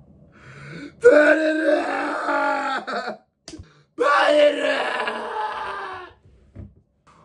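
A young man screams and wails loudly.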